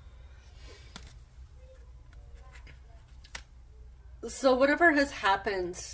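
A card slides softly onto a cloth-covered table.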